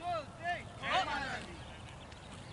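Men shout and cheer outdoors.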